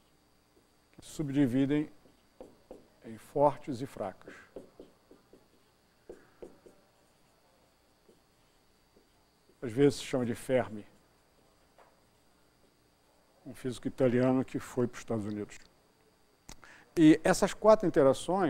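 An elderly man speaks calmly to an audience, heard through a microphone.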